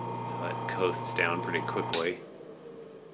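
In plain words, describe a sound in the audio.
An electric motor hums steadily, then stops.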